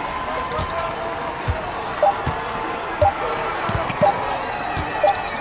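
A basketball bounces rhythmically on a hardwood floor.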